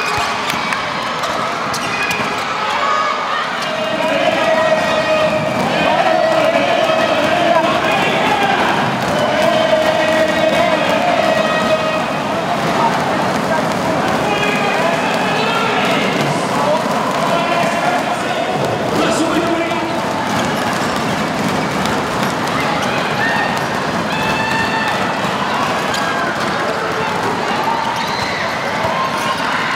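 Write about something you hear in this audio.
A crowd cheers in a large echoing arena.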